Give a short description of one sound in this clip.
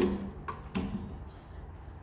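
An acoustic guitar's strings ring briefly as the guitar is set down.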